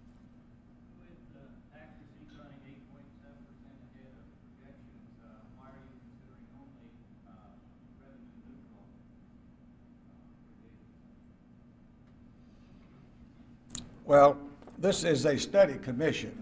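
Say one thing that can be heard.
An elderly man speaks calmly into a microphone in a large room.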